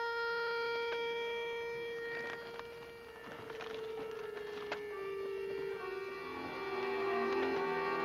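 An accordion plays a slow, sustained melody.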